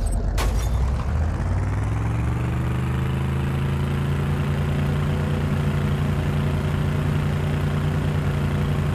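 A vehicle engine hums and revs up steadily.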